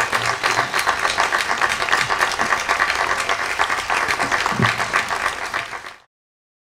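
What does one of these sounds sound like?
A crowd applauds and claps.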